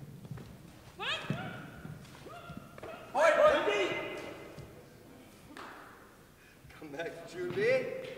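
Young martial artists let out sharp, rising shouts nearby in a large echoing hall.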